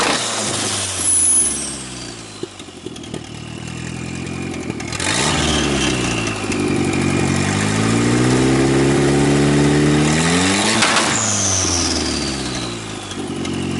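A turbo whistles and hisses as the engine revs drop.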